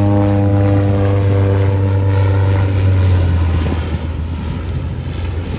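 A propeller plane's engine drones loudly overhead and then fades as it flies away.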